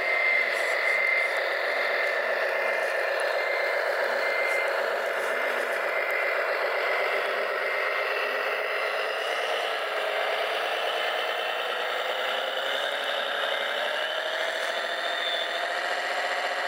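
A toy truck's electric motor whines steadily, its pitch slowly rising and falling.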